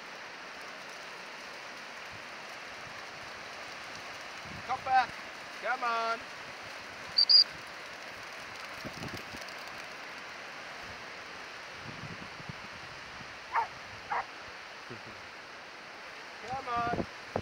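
Dogs splash as they run through shallow water.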